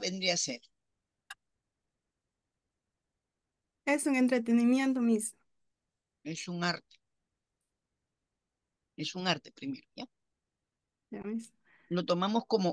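A woman speaks calmly, in short bursts, through an online call.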